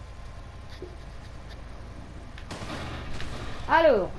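A motorcycle crashes onto the road with a thud.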